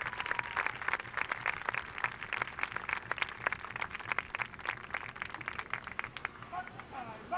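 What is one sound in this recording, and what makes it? A marching band's drums rattle and tap quickly, heard from a distance outdoors.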